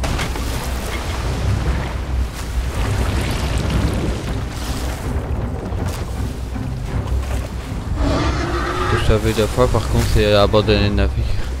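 Ocean waves surge and crash against a wooden ship.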